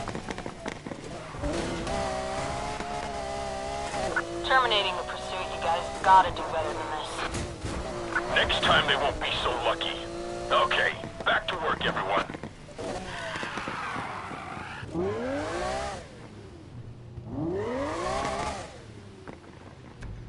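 A sports car engine roars and revs hard, rising and falling in pitch.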